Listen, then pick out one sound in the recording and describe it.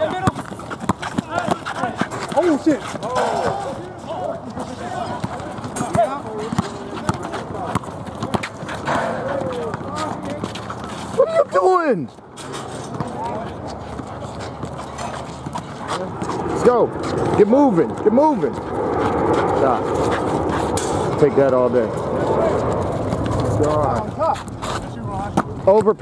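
A basketball bounces on hard pavement.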